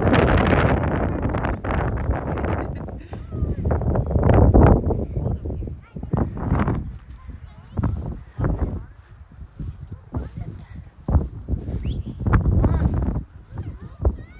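Wind rumbles across the microphone outdoors in gusts.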